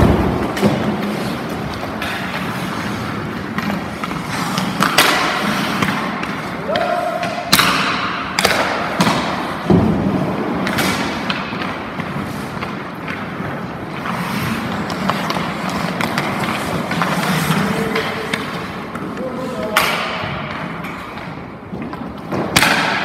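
Hockey skates scrape and carve on ice in an echoing rink.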